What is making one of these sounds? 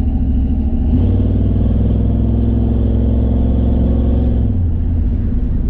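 A truck engine revs harder as it speeds up.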